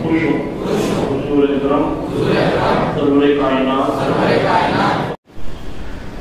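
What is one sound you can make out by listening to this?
A crowd of men chants together.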